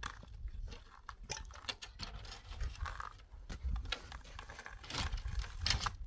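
Wooden boards knock and clatter against concrete.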